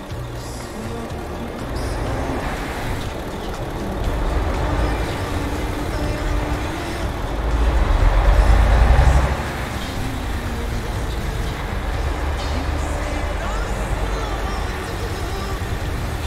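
A bus engine rumbles steadily, swelling louder for a moment as the bus pulls away.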